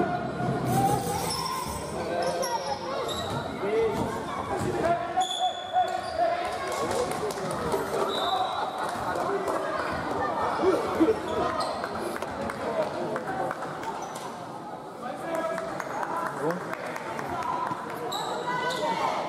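A crowd of spectators murmurs and calls out in an echoing hall.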